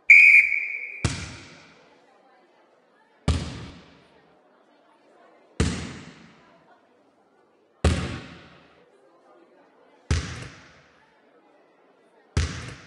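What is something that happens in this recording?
A basketball bounces on a wooden floor at a slow, steady pace.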